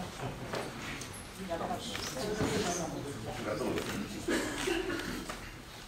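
A man and a woman talk quietly nearby.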